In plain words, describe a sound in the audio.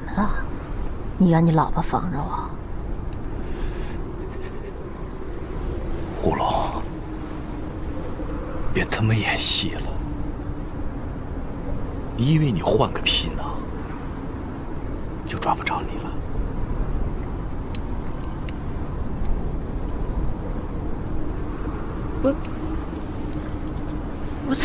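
A woman speaks tearfully and close by.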